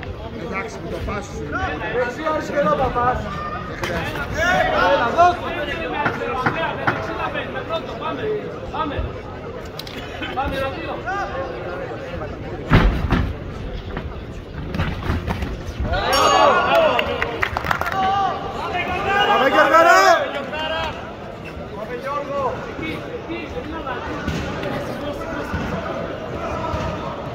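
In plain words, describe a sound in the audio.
Boxing gloves thud against each other in quick punches, echoing in a large hall.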